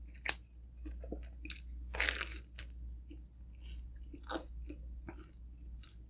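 Crispy pizza crust crunches as a young woman bites into it.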